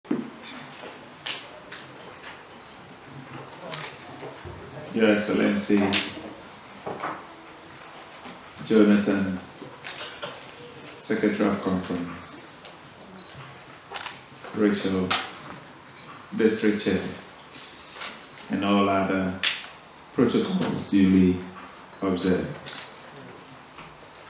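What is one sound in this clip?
A man speaks slowly and solemnly into a microphone, with pauses, in an echoing hall.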